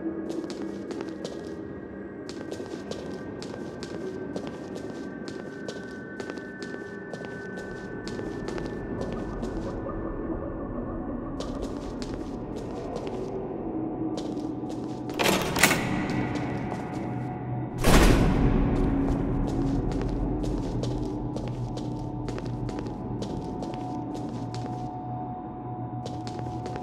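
Footsteps tap quickly on a hard stone floor, echoing.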